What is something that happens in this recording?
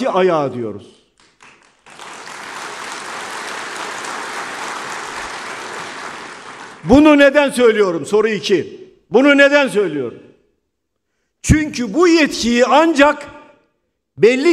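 An elderly man speaks forcefully into a microphone, his voice carrying through a large hall.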